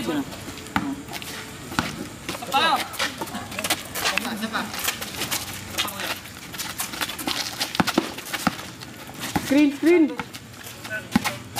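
A basketball bounces on a concrete court.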